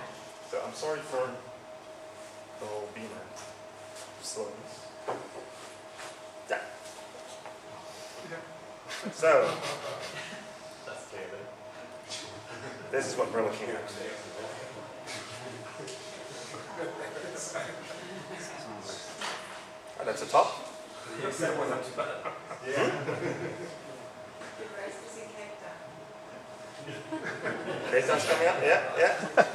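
A young man speaks calmly into a microphone in a large room with some echo.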